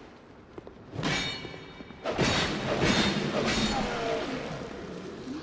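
A sword slashes and strikes with heavy metallic blows.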